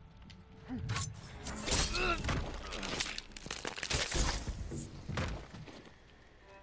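A blade stabs into a body with a wet thrust.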